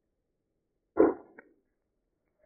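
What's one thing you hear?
A game character is stabbed with a sudden thud.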